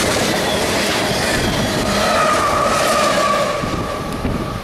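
A train rushes past close by with a loud roar and rattle.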